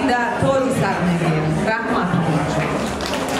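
A middle-aged woman sings into a microphone.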